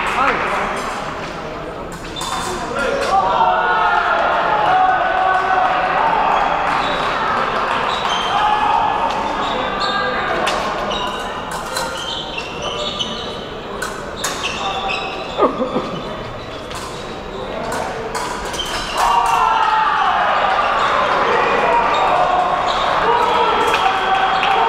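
Fencers' feet tap and slide quickly on a metal strip.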